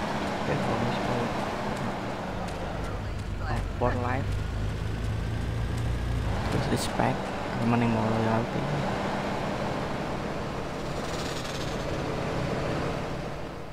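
A car engine hums as it drives by.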